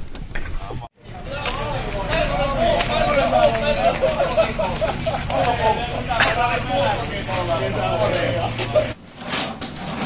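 Several men talk over each other nearby, outdoors.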